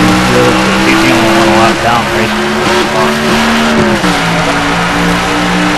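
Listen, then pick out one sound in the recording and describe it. A race car scrapes and bumps against another car.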